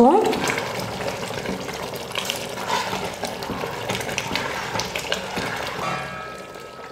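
A ladle stirs and sloshes through liquid in a metal pot.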